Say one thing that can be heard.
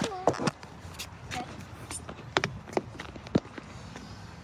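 Footsteps tap on a hard pavement close by.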